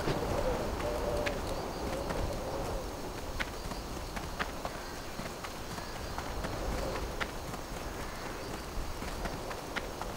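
Footsteps run steadily over hard ground.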